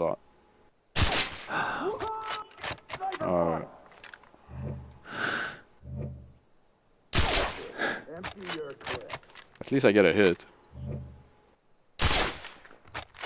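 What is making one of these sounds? A rifle fires sharp, loud shots a few seconds apart.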